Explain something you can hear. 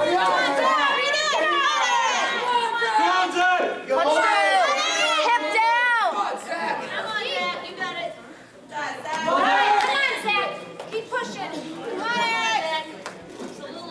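Spectators shout encouragement loudly nearby.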